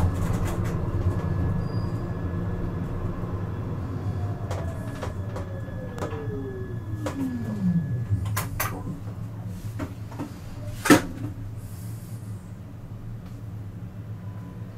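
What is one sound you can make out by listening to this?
A tram rumbles steadily as it rolls along rails.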